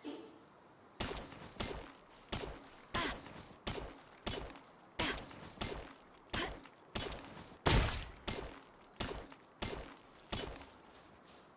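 A pickaxe strikes rock in quick, repeated blows.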